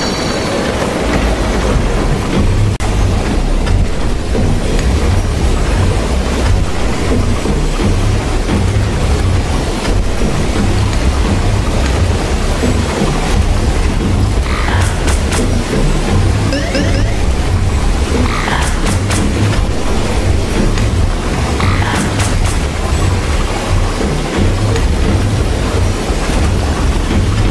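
Video game music plays with a steady, thumping beat.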